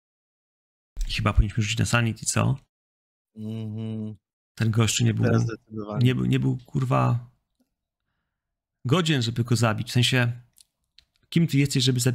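A man talks with animation through a microphone, heard as if over an online call.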